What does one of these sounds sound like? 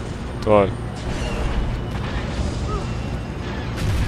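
A rocket whooshes past.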